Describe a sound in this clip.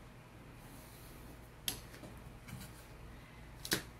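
A thin wooden board is lifted and knocks lightly against paper.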